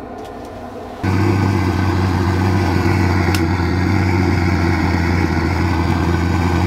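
A gas torch roars loudly and steadily.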